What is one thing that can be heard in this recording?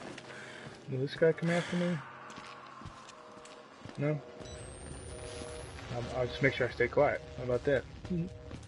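A deep-voiced man grunts and growls close by.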